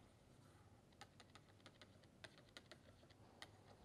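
A pen taps and scratches on paper.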